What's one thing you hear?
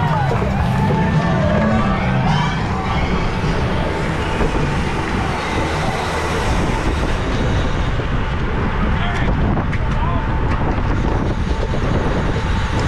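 Wind rushes loudly past a fast-moving bicycle.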